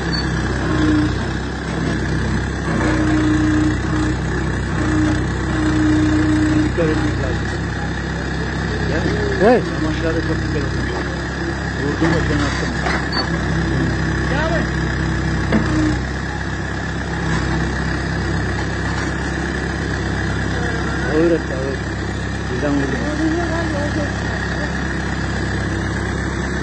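A diesel engine hums steadily close by.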